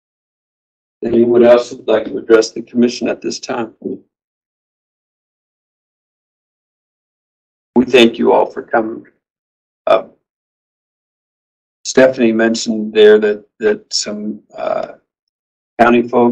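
A man speaks calmly through a microphone, with short pauses.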